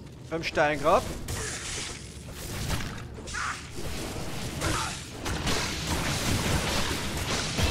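Magic spells crackle and whoosh during a fight.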